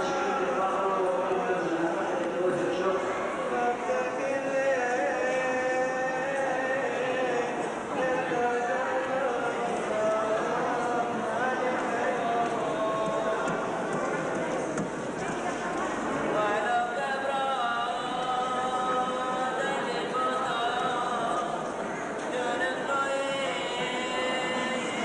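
A crowd of men murmurs and talks in a large echoing hall.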